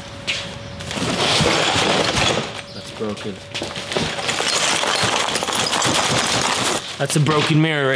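Cardboard scrapes and rustles as a large box is handled.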